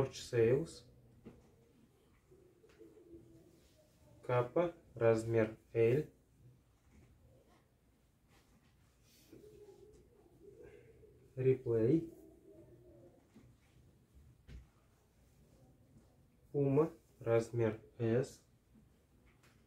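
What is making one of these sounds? Fabric rustles as shirts are laid down and smoothed flat.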